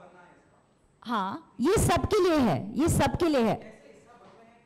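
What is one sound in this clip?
A woman speaks with feeling into a microphone, her voice loud and close.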